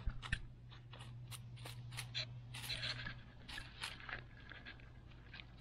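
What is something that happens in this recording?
A chipmunk scurries over dry leaves, rustling them.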